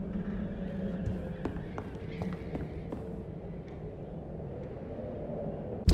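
Footsteps creak across a wooden floor.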